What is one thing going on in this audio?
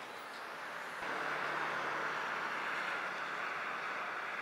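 Cars and trucks rush steadily along a distant highway.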